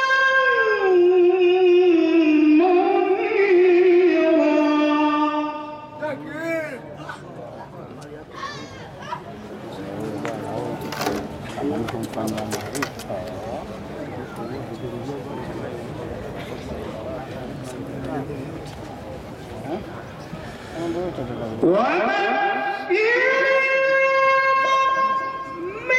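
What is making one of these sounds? A middle-aged man chants in long, drawn-out melodic phrases through a microphone.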